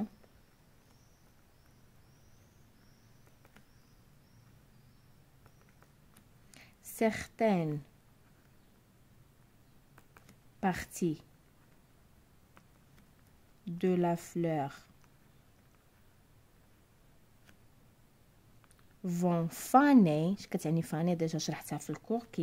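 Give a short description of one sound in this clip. A pencil scratches softly on paper while writing.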